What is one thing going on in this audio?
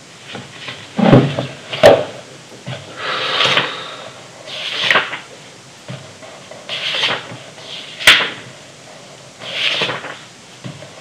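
Paper pages of a book rustle and flip, one after another.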